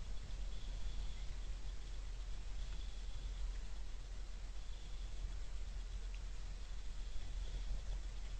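Small birds chirp faintly outdoors.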